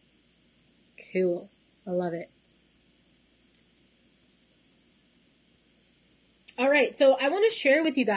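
A young woman speaks with animation through a computer microphone.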